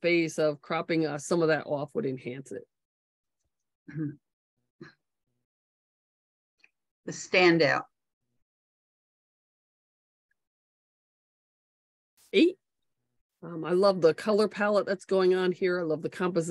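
A woman speaks calmly into a microphone, pausing often.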